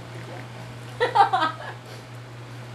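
A young woman laughs loudly close by.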